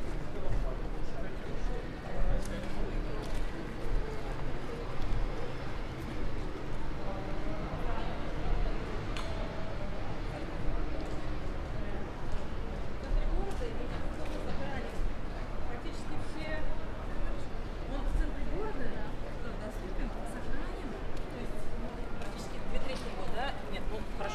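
Passersby talk quietly outdoors.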